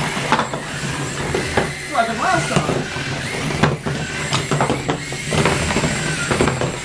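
Small toy robots knock and clatter against each other.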